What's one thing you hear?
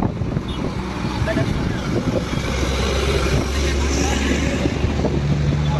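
A heavy truck drives past with a deep engine rumble.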